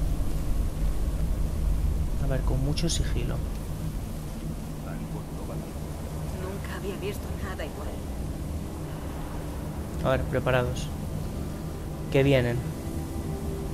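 Flames crackle softly close by.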